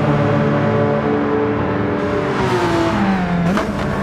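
Several racing car engines drone together.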